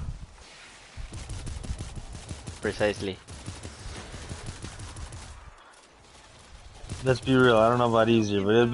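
Rapid gunfire and explosions crackle in a video game.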